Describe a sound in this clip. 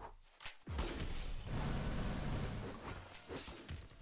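An energy blast bursts with a loud whoosh.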